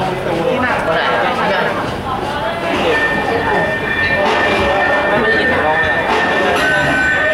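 A drum kit is played with a steady beat.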